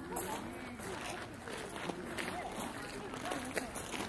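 Women chat nearby outdoors.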